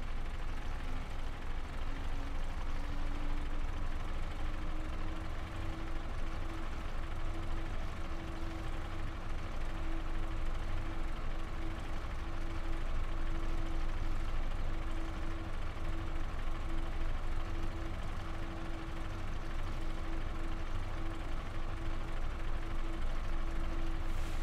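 A bus engine hums steadily, rising slightly in pitch as the bus picks up speed.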